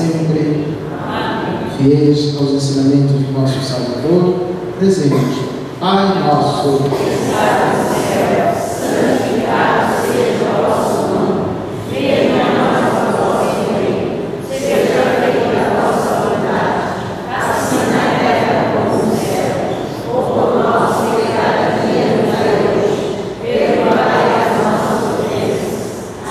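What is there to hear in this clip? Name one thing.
A man chants a prayer through a microphone in an echoing hall.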